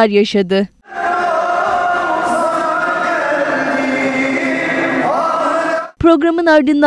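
A crowd of men chants together in a large echoing hall.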